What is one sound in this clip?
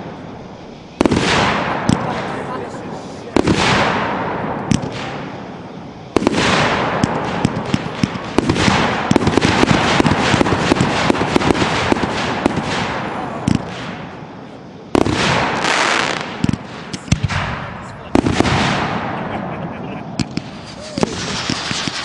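Fireworks burst with loud booms overhead.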